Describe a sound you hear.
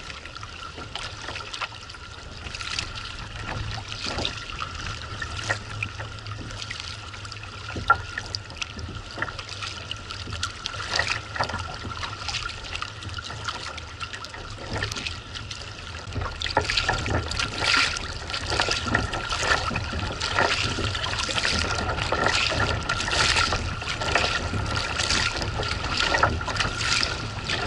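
Water laps and splashes against a kayak's hull.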